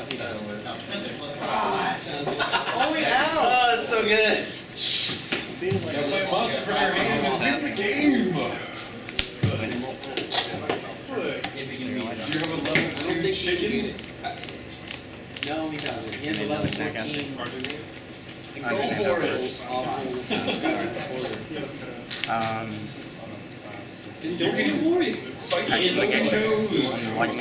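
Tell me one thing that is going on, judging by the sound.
Playing cards shuffle and tap softly on a table mat.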